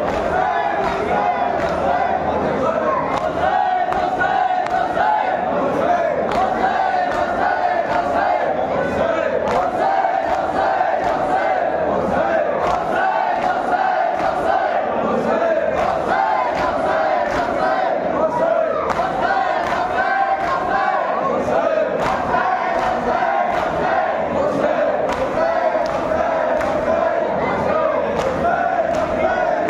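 A crowd of men chant together loudly in a large echoing hall.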